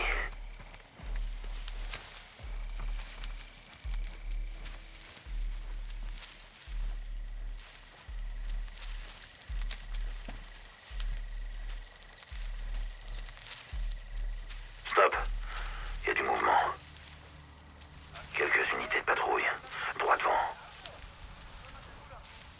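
Tall grass rustles and swishes as someone crawls through it.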